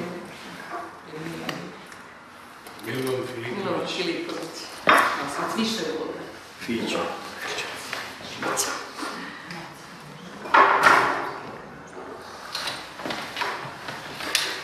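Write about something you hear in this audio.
Several adults talk and murmur nearby.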